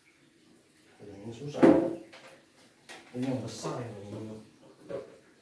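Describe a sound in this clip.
A man talks calmly nearby.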